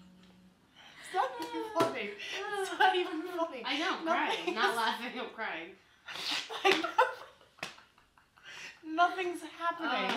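Two young women laugh loudly up close.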